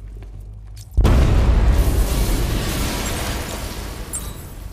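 A loud explosion booms, followed by a rumbling roar of falling debris.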